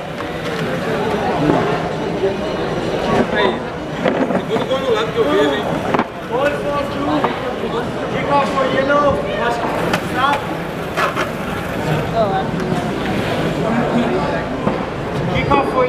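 A stick scrapes and taps against small robots on a hard floor.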